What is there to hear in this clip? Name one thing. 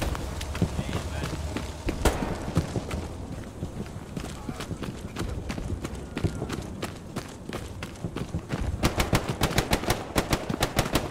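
Footsteps crunch over dry twigs and ash.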